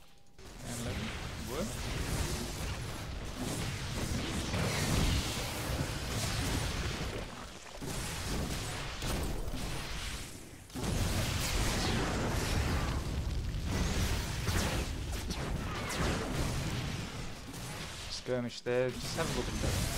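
Energy weapons fire in rapid bursts during a battle.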